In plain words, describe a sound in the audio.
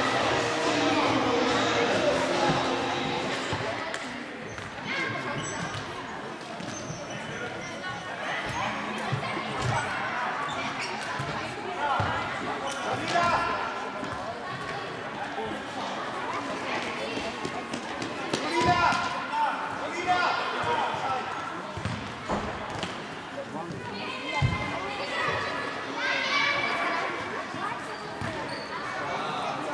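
Children shout and cheer in a large echoing hall.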